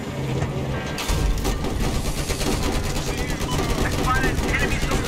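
A heavy machine gun fires in rapid, rattling bursts.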